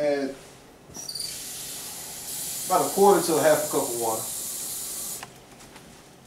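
Water runs from a tap into a sink.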